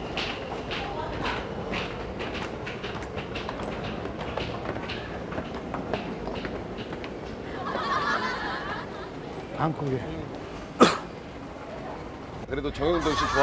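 A crowd of people walks and murmurs.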